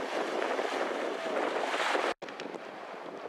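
Paddles splash in the water.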